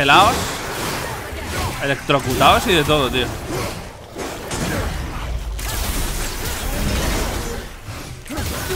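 Blows and clashes of a fight ring out.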